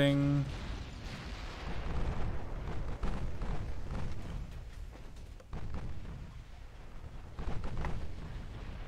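Heavy guns fire in loud booms.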